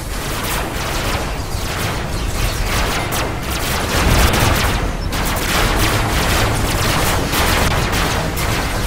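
Game weapons fire in rapid bursts.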